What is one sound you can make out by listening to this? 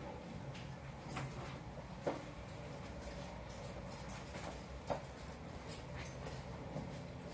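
A man moves about close by with a few sharp knocks and thuds.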